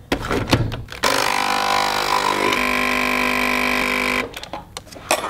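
Coffee trickles into a mug.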